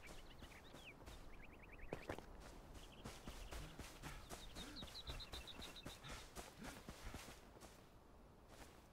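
Quick footsteps run through grass.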